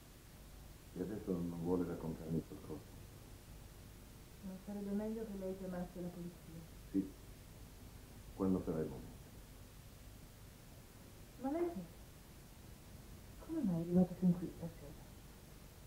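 A woman speaks tensely, close by.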